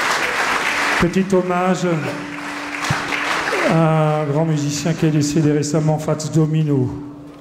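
A small jazz band starts to play with upright bass, guitar and piano.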